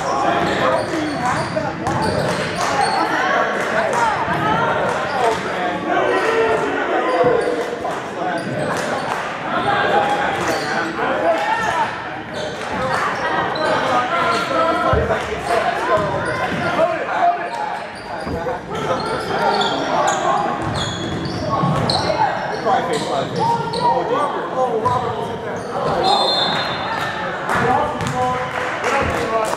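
A crowd of spectators chatters and cheers.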